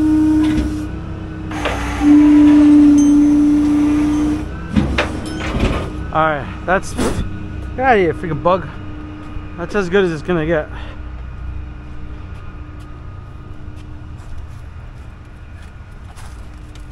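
A truck engine hums steadily close by.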